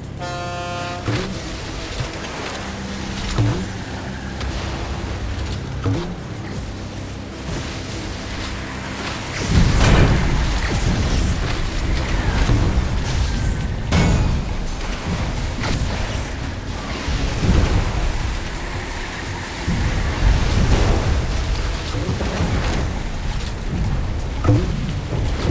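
A boat engine hums steadily while speeding over water.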